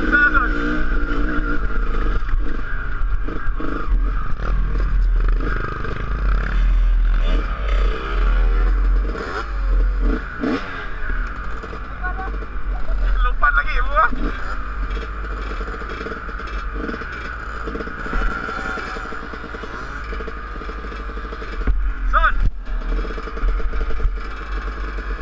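A dirt bike engine idles and revs close by.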